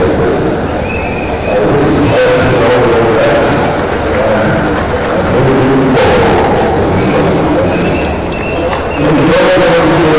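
An elderly man speaks calmly through a microphone and loudspeakers outdoors in an open stadium.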